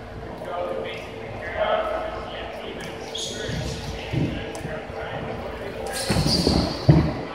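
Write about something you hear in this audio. Young men talk and call out in a large echoing gym.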